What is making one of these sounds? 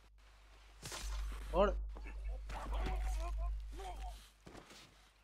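Bodies scuffle and thud in a short, violent struggle.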